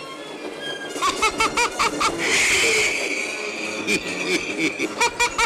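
A man laughs loudly and gleefully.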